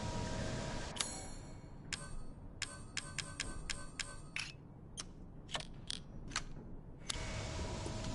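Short menu clicks tick in quick succession.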